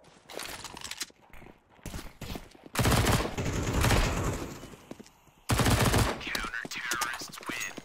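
A rifle fires in short bursts of sharp shots.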